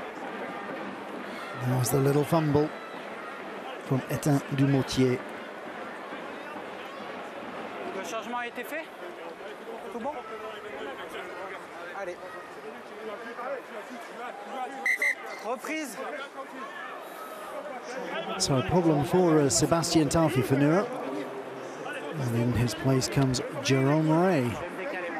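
A large stadium crowd murmurs steadily outdoors.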